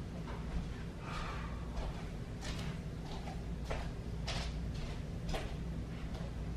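Footsteps thud across the floor.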